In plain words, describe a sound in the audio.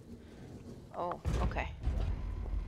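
Metal elevator doors slide shut with a clunk.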